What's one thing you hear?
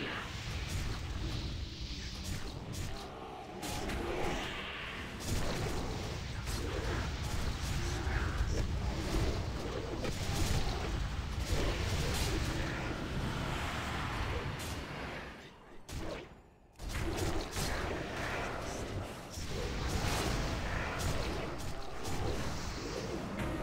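Weapon blows clash and thud against a large creature.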